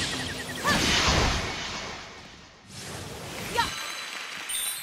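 Sword slashes whoosh and clang in quick bursts.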